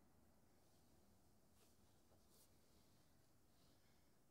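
Fabric rustles faintly as a person shifts on a soft cushion.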